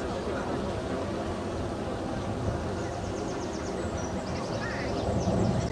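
A motorboat's engine hums steadily nearby.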